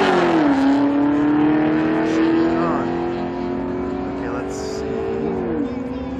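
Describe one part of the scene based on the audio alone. Loud car engines roar steadily outdoors.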